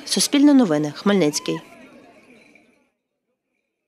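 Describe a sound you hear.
A crowd of people chants loudly outdoors and the sound fades away.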